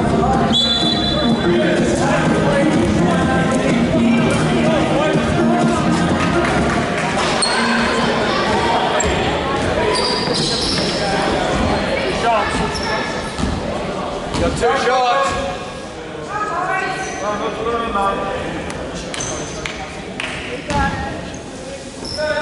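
Young men call out and talk loudly across the court.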